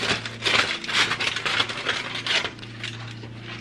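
Foil crinkles loudly as it is peeled back.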